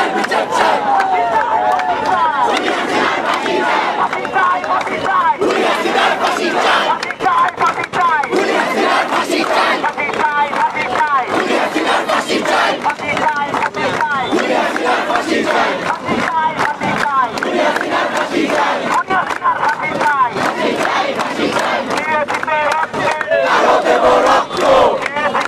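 A young man shouts slogans through a megaphone.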